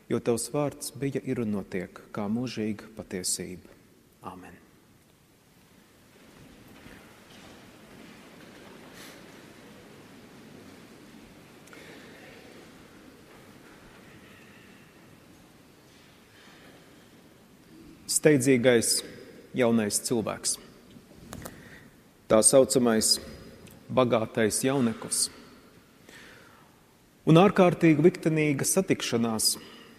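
A young man speaks calmly into a microphone in a large echoing hall, with pauses.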